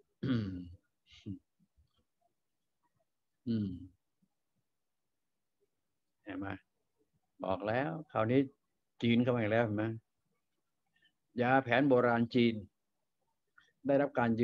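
An elderly man speaks calmly close to a microphone, in short phrases with pauses.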